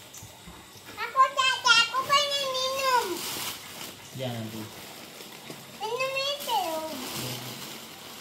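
A young girl speaks close by in a high, lively voice.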